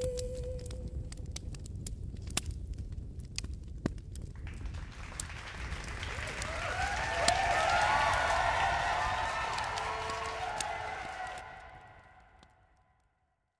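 A fire crackles and pops.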